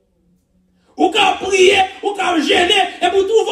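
A man preaches loudly through a microphone and loudspeakers in an echoing hall.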